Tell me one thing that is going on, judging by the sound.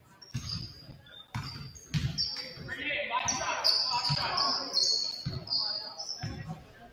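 Basketballs bounce on a hard court in an echoing gym.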